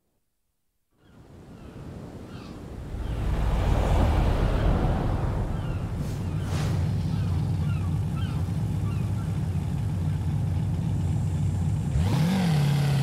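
A sports car engine roars steadily while driving.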